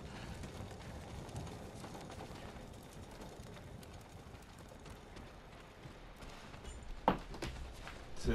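Footsteps run quickly up stone steps.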